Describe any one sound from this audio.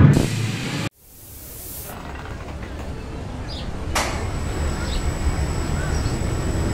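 A roller coaster train rumbles and rattles along its track.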